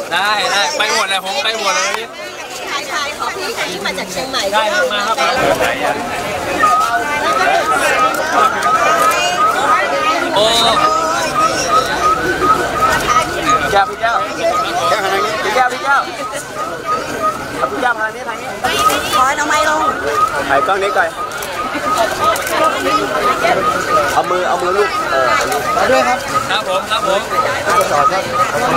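A crowd of men and women chatters and calls out close by.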